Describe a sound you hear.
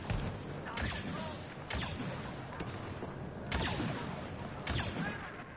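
Gunshots crack and boom at intervals amid a battle.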